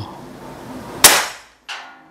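An air rifle fires with a sharp crack.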